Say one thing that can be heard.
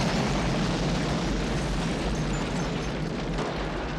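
A huge explosion roars and rumbles.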